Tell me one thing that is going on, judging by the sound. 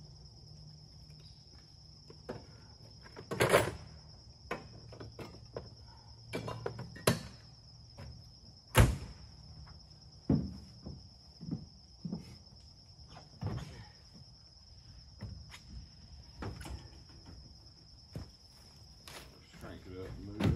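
Wood knocks and thuds.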